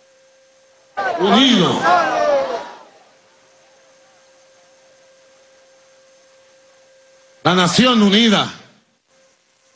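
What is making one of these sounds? A man speaks forcefully into a microphone in short bursts with long pauses.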